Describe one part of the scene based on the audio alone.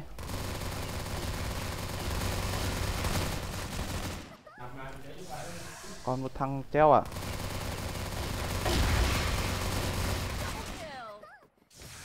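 Guns fire in rapid, continuous bursts.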